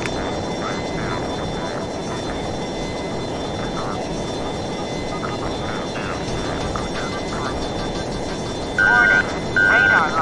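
A jet fighter's engines roar, heard from inside the cockpit.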